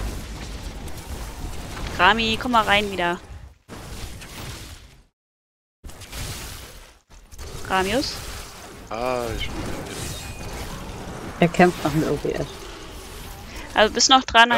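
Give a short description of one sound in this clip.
Magic spells crackle and blast during a fight.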